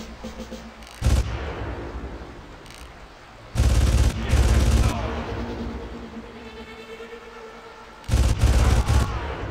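Rifle shots ring out in bursts, echoing afterwards.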